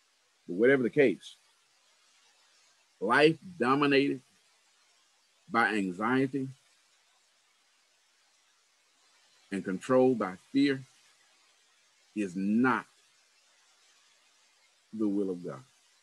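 A man speaks slowly in short phrases over an online call.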